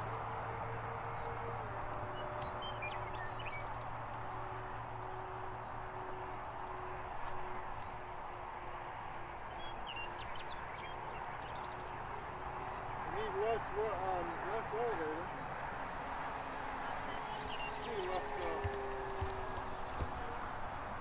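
A small propeller plane drones steadily overhead.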